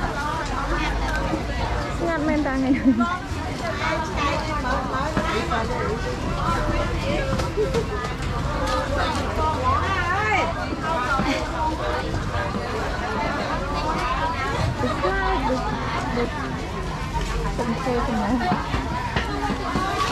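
A crowd of men and women chatter all around, outdoors.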